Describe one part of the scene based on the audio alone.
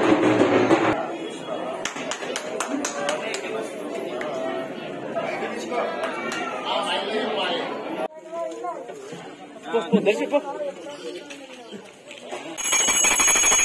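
Men talk in a murmur nearby.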